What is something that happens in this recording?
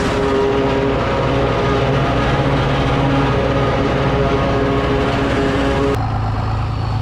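Chopped crop hisses as it blows into a wagon.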